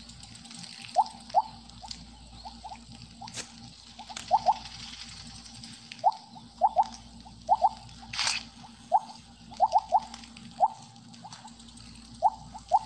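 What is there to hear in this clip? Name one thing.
Short rising blips chime again and again as a game snake eats glowing pellets.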